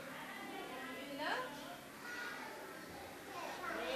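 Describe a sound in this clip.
Young children call out and chatter nearby.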